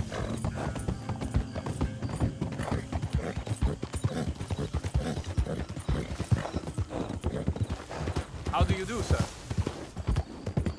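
Horse hooves thud steadily on the ground at a gallop.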